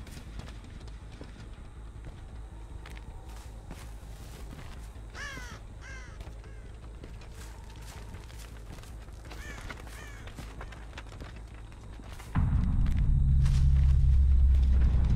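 Footsteps crunch through dry grass and dirt.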